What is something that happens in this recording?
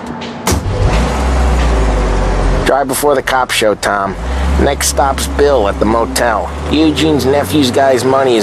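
A car engine rumbles low as the car pulls away.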